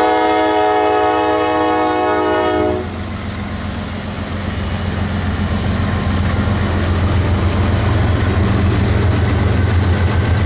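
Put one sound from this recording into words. Train wheels clatter and rumble over the rails.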